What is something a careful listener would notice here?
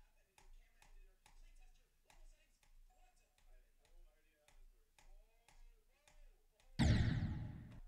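Fast electronic game music plays quietly.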